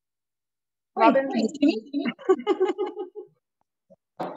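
A second woman speaks and laughs over an online call.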